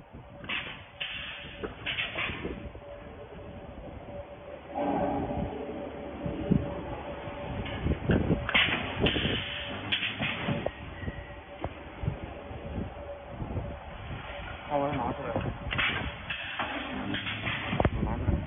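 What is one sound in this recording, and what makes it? A welding machine hums and clunks as it presses down.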